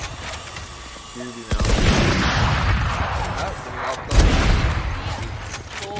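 Gunshots crack sharply in a game.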